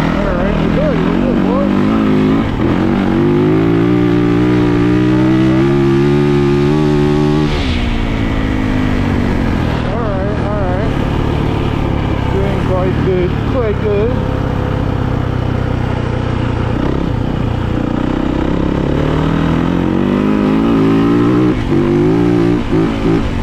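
A single-cylinder four-stroke dirt bike accelerates hard through the gears.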